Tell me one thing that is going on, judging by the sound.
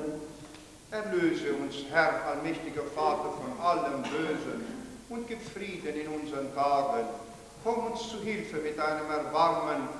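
An elderly man chants aloud.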